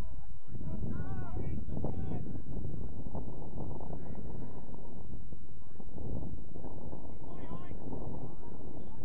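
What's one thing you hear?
Young players call out faintly across an open field.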